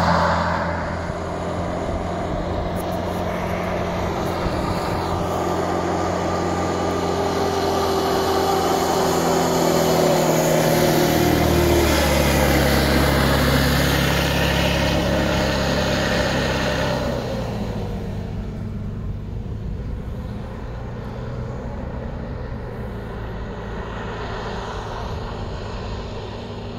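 A hovercraft engine drones loudly, rising and falling in pitch.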